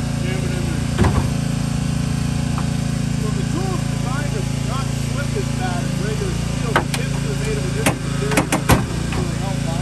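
Car metal cracks and snaps sharply under a hydraulic rescue tool.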